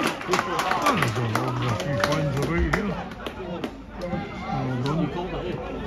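A crowd of young men cheers in celebration.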